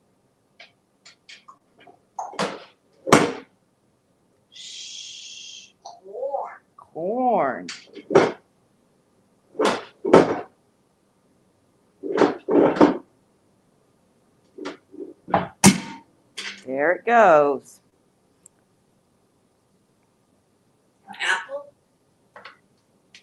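A parrot squawks, whistles and chatters loudly close by.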